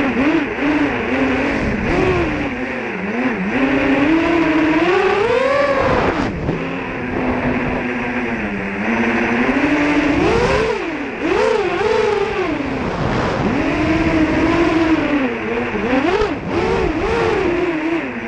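Drone motors whine loudly, rising and falling in pitch as the drone speeds and turns.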